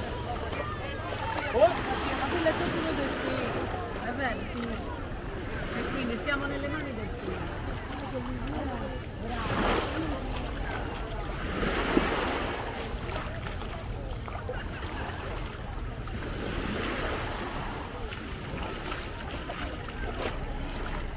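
Small waves lap gently on a pebbly shore.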